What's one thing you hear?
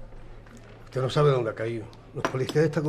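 A middle-aged man speaks calmly up close.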